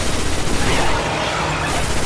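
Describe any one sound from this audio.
Electric crackling bursts from an energy blast.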